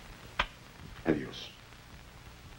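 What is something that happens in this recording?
A woman speaks quietly.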